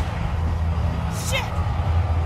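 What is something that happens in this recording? A young woman exclaims in shock.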